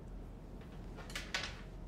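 Hands rustle close to a microphone.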